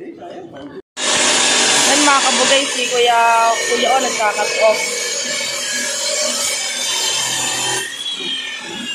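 A grinding wheel whirs loudly against metal.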